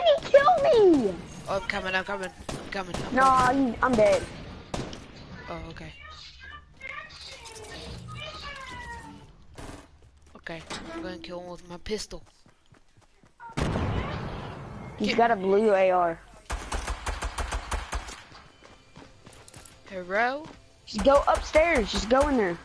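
A boy talks excitedly close to a microphone.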